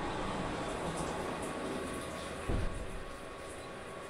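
Coolant sprays and hisses inside a machine, then stops.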